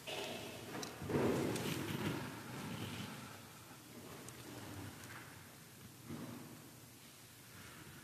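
A man speaks softly in a large echoing hall.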